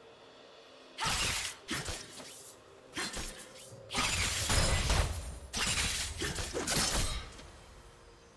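Game spell blasts and weapon hits crash rapidly during a video game battle.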